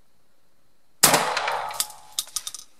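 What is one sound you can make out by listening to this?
A shotgun fires a loud shot that echoes down a long tunnel.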